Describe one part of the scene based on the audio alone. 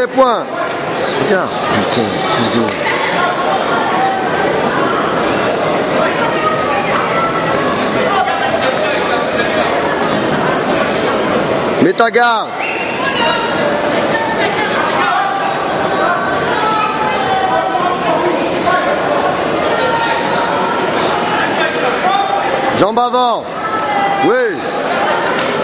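A large crowd chatters in an echoing hall.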